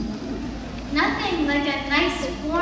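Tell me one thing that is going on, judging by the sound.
A young girl sings on a stage, heard from out in the audience.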